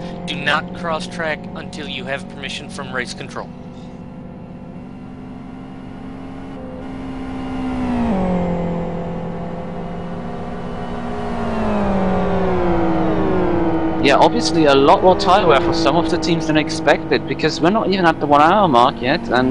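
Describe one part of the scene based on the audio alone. A racing car engine drones steadily, dropping in pitch as it changes gear.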